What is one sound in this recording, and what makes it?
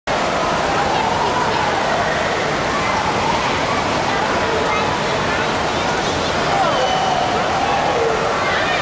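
Children shout and call out.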